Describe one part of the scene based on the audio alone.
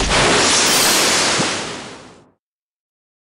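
A magic spell bursts with a loud whooshing roar, then fades.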